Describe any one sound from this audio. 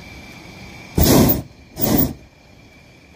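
A gas burner roars in two short blasts.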